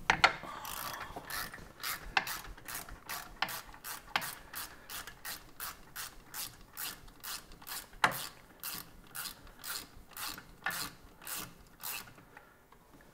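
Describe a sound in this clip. A hand tool rasps against metal in quick, even strokes.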